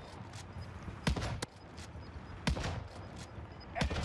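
Sniper rifle shots crack loudly.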